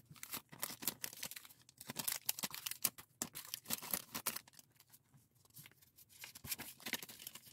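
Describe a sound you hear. Small plastic and metal keychain charms clink and rustle as they are handled close by.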